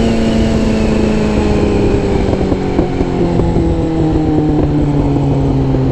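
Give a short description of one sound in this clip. A motorcycle engine drones and drops in pitch as the bike slows down.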